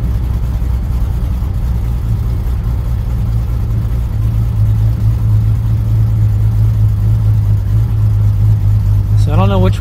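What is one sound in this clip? A car engine drones steadily at cruising speed.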